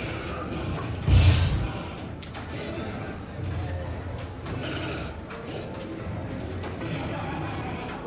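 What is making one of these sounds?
A crowd murmurs and chatters in a large, busy hall.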